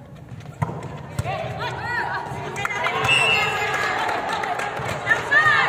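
A ball thumps on a hard floor in a large echoing hall.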